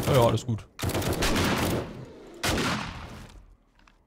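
A gun fires several loud shots.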